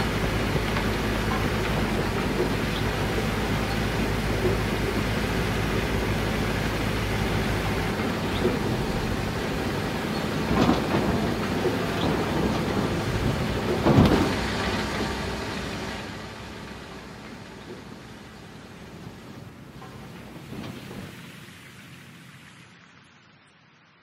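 A heavy truck engine rumbles steadily, then fades away.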